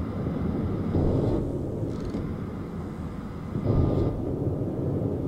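Heavy ship guns fire with deep booms.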